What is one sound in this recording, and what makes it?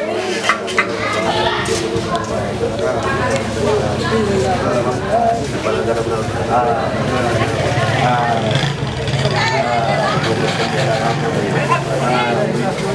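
A group of adults chatter together nearby.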